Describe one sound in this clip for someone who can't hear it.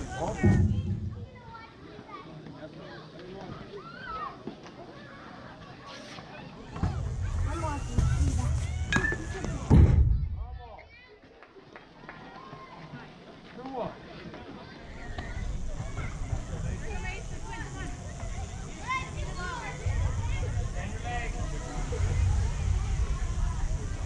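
Men and women call out and cheer from close by, outdoors.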